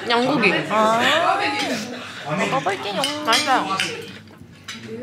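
Young women talk close by, with animation.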